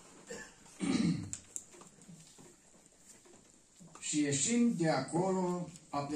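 An older man speaks calmly into a microphone, reading out.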